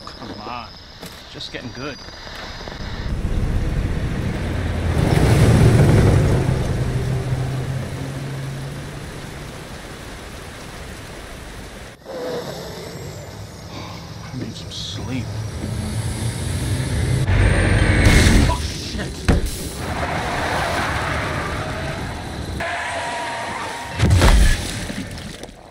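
A heavy truck engine rumbles steadily.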